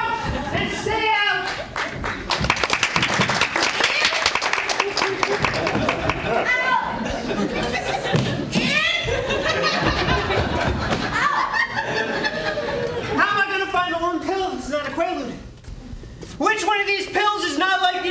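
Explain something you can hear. A young man speaks loudly and with animation in a large echoing room.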